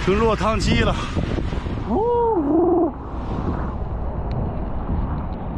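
Strong wind roars and buffets the microphone outdoors.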